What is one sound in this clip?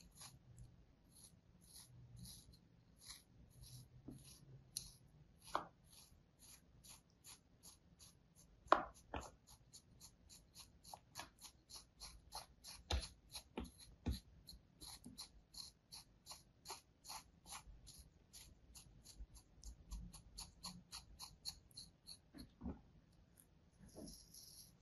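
A thin blade scrapes and cuts through damp sand in quick, repeated strokes, close by.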